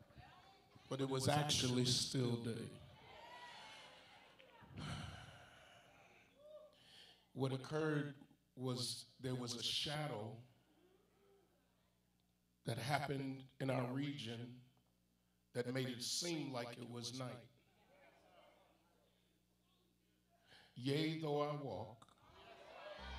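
A man speaks into a microphone with feeling, heard through loudspeakers in a large echoing hall, pausing between phrases.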